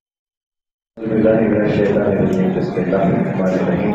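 A man speaks into a microphone, heard through loudspeakers.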